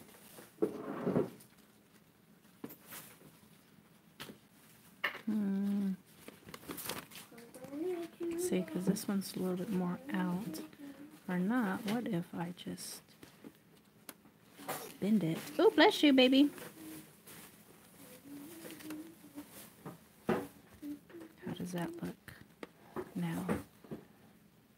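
Stiff paper ribbons rustle softly as hands handle them.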